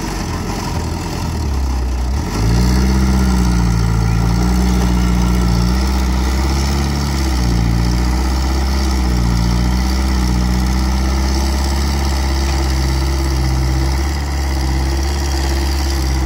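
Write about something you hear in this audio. A diesel excavator engine rumbles and revs close by.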